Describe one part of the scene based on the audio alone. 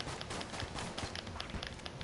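Small guns fire in quick bursts.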